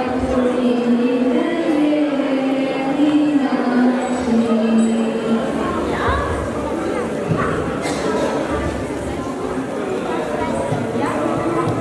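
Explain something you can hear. A young woman speaks into a microphone through a loudspeaker.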